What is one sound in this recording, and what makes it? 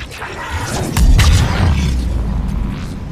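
A heavy blast booms with a crackling burst of energy.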